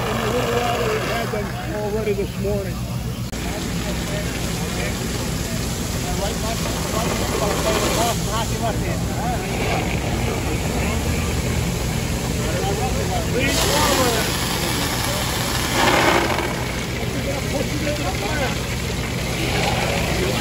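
Water sprays hard from fire hoses with a steady hiss.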